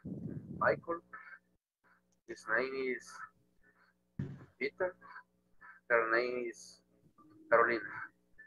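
A woman speaks slowly and clearly through an online call.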